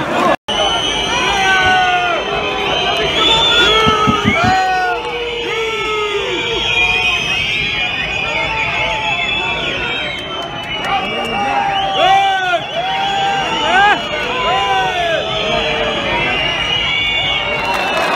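A crowd cheers and shouts in a large open stadium.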